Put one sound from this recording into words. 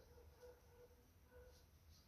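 A cloth rubs against a brush.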